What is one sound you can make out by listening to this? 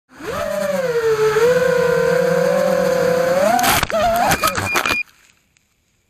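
Small drone motors whine loudly and steadily, then cut out.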